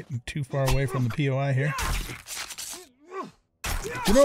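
A knife hacks into an animal carcass.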